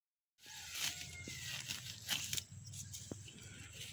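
Dry grass rustles as a boy pulls at it.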